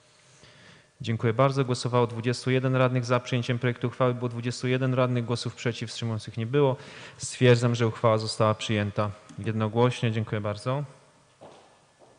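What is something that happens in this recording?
A man speaks calmly and formally into a microphone.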